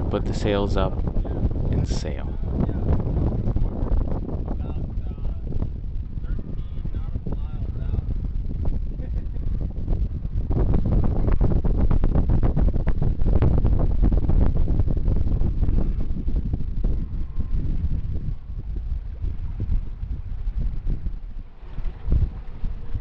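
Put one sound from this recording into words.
Wind buffets loudly, outdoors on open water.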